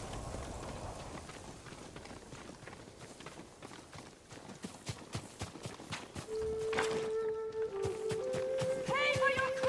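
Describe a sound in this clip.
Footsteps run through tall grass.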